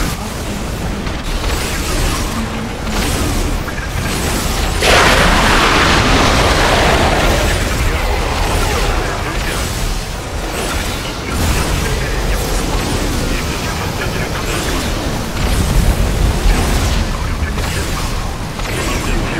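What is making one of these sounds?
Game explosions boom throughout a battle.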